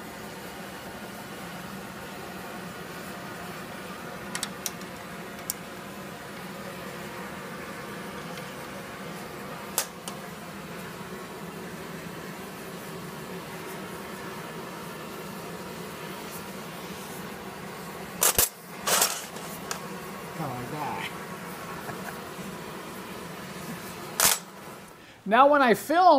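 A gas torch hisses steadily.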